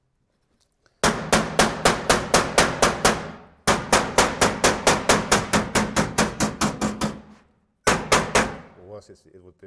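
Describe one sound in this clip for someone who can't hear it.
A hammer taps rapidly and sharply on metal.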